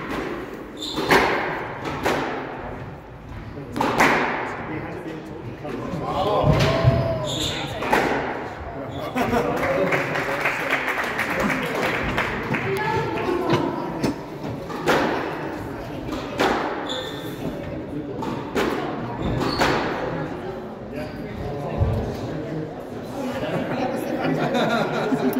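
Squash rackets strike a ball that smacks off the walls of an echoing court.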